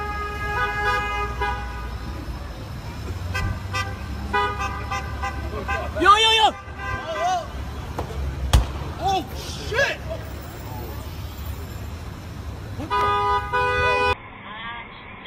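Traffic rumbles along a busy city street.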